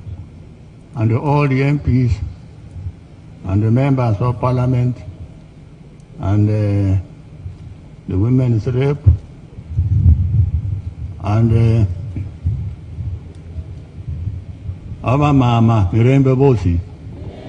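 An elderly man speaks slowly in short phrases through a microphone and loudspeakers.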